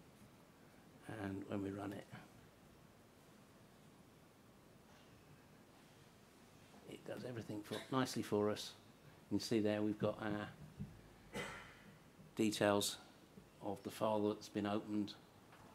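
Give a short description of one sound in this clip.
A middle-aged man speaks calmly into a microphone, pausing now and then.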